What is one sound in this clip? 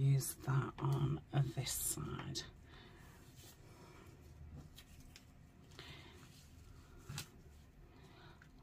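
Paper rustles and crinkles softly.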